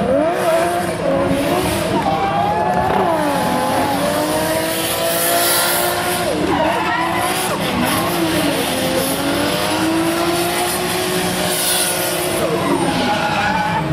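Several drift cars' engines roar as they slide past.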